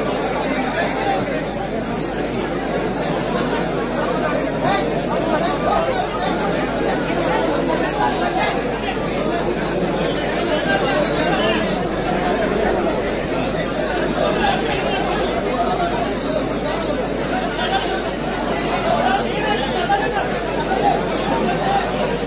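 A large crowd of men and women murmurs and calls out all around, close by.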